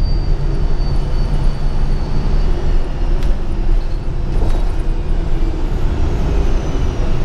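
A bus engine rumbles low and steady from inside a moving bus.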